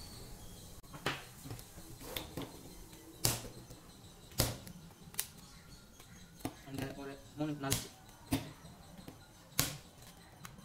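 A plastic pipe knocks lightly against a hard floor several times.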